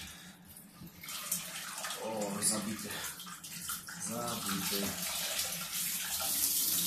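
Water splashes and drips from a filter into a bathtub.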